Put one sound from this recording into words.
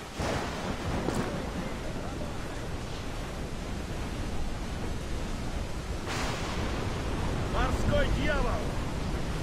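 Wind howls in a storm at sea.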